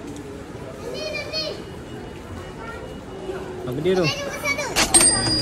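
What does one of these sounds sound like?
A small child calls out in a high voice.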